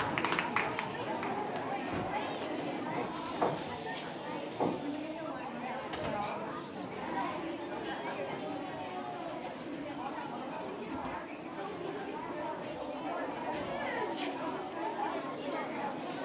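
Children chatter and murmur in a large echoing hall.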